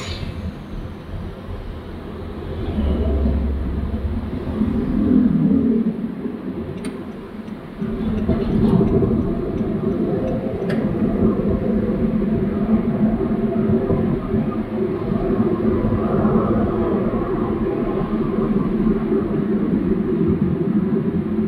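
Tyres roll on the road surface with a steady rumble.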